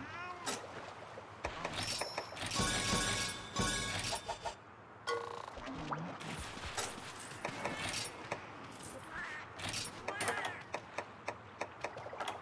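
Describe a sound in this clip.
Game menu sounds blip and click as options are scrolled and selected.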